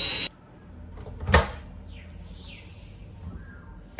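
A washing machine door clicks open.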